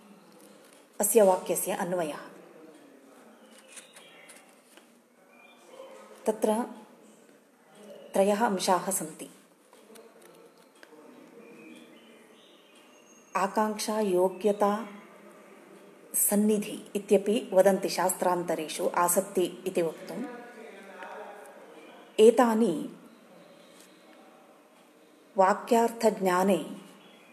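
An older woman speaks calmly close to a microphone, in short bursts with pauses.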